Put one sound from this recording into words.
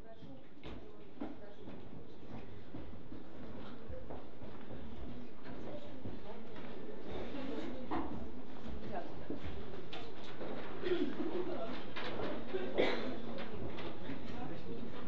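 An audience murmurs and chatters quietly, slowly growing louder.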